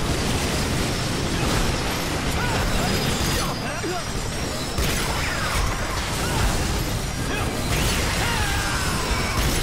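Rapid gunfire and laser blasts crackle constantly.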